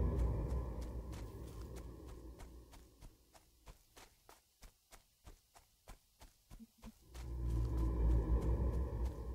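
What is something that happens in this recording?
Footsteps crunch steadily over gravel and grass.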